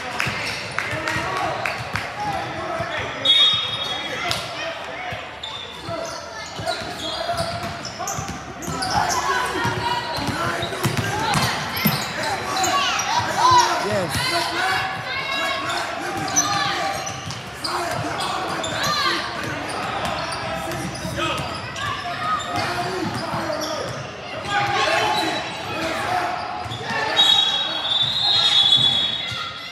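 Many voices chatter and call out in a large echoing gym.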